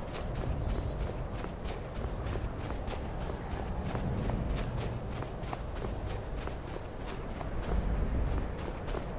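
Footsteps crunch rhythmically in snow.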